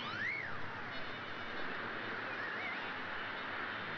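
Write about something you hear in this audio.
Waves surge and splash against the side of a moving ship.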